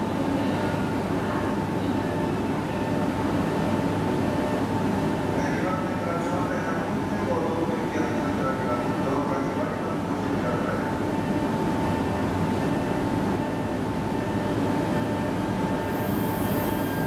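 A train's engine hums steadily while it stands still.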